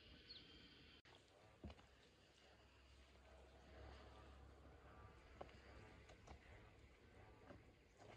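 Footsteps crunch slowly on a dirt path outdoors.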